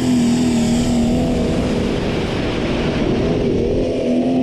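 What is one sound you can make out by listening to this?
A tractor's tyres churn through mud as it passes close by.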